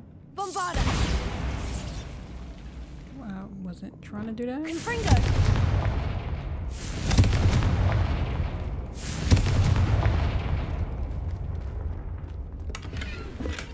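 Magic spells whoosh and burst with deep booms.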